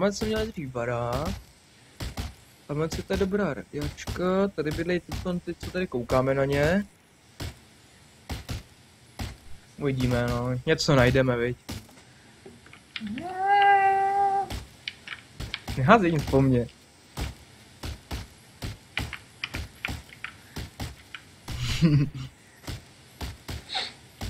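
A hatchet chops into a tree trunk with repeated sharp knocks.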